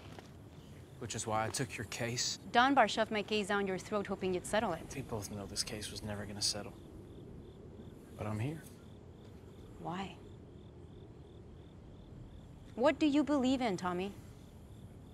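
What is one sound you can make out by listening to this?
A young woman speaks with feeling, close by.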